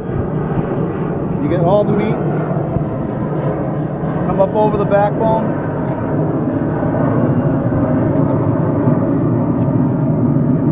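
A knife slices through a fish on a cutting board.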